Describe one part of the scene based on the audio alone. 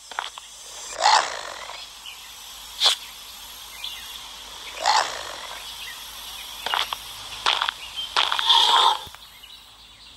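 A stone hammer whooshes through the air and thuds against rock several times.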